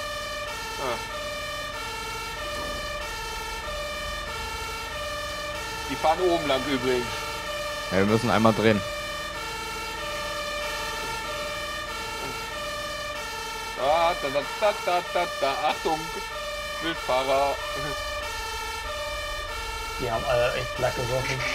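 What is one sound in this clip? A two-tone siren wails steadily close by.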